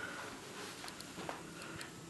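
A newspaper rustles as its pages are handled.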